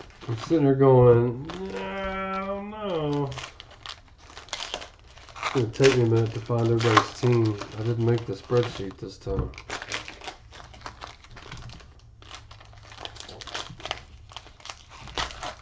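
A foil wrapper crinkles and rustles in someone's hands.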